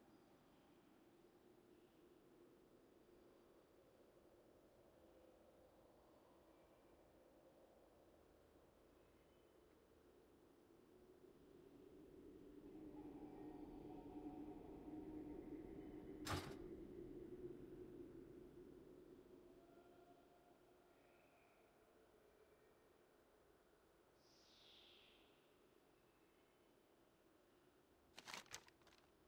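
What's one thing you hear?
A young man talks calmly and quietly into a microphone.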